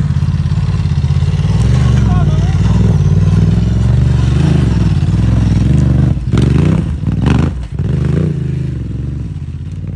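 A motorcycle engine rumbles and revs close by.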